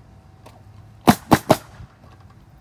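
A nail gun fires three quick shots into roof shingles.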